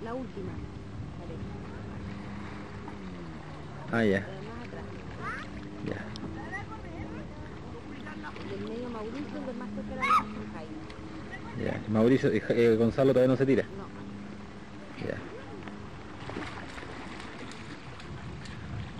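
Men and women call out and shout across open water from a distance.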